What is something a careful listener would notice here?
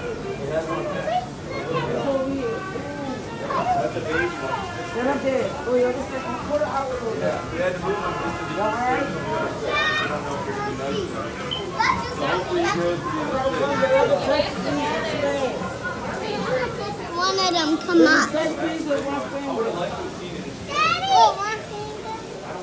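Children talk and shout excitedly nearby.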